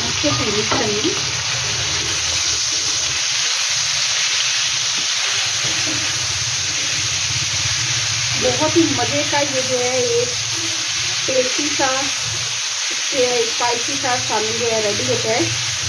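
Food sizzles steadily in hot oil in a pan.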